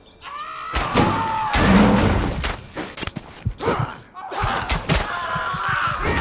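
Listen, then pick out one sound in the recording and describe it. Small explosions crack and boom.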